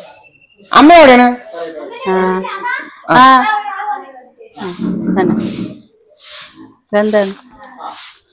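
A broom sweeps across a hard floor.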